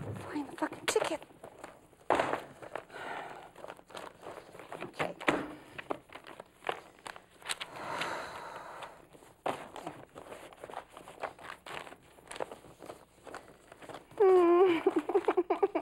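Papers rustle and crackle as a woman leafs through them.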